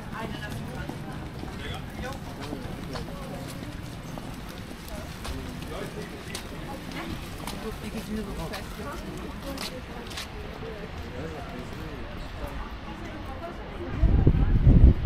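People talk and murmur nearby outdoors.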